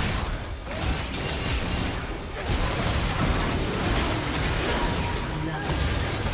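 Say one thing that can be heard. Game weapons clash and strike in quick bursts.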